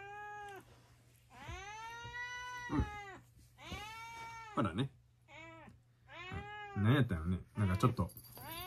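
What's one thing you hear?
A cat meows repeatedly, in long drawn-out cries.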